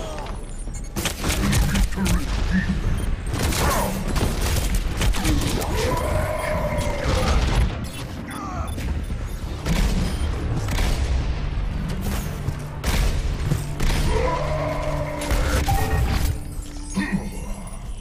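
A grenade launcher fires and explosions boom in bursts.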